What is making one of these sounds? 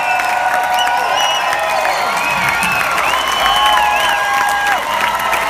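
A rock band plays loudly.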